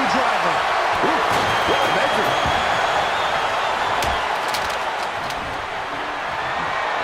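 A large crowd cheers and roars steadily in a big arena.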